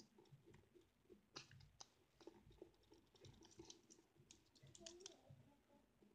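Paper rustles and crinkles under fingers close by.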